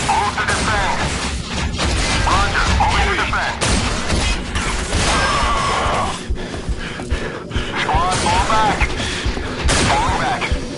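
Shotgun blasts boom loudly.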